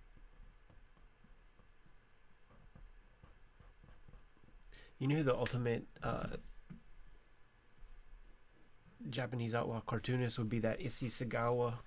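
A felt-tip pen scratches and squeaks softly on paper.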